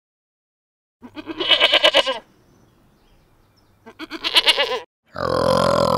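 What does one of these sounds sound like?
A young goat bleats in short, wavering cries.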